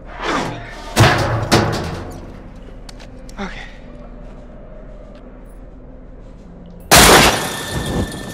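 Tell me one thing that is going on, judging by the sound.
A young man grunts with effort.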